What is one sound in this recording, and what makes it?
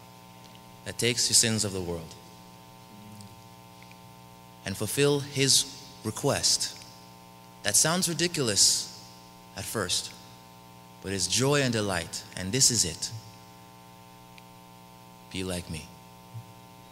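A young man speaks calmly into a microphone, heard over a loudspeaker in an echoing hall, with pauses between phrases.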